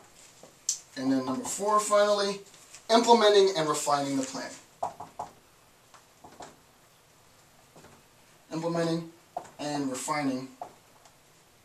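A man speaks calmly and clearly, close by.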